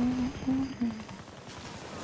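An explosion bursts nearby, scattering debris.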